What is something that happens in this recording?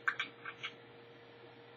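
A spoon clinks against a ceramic mug.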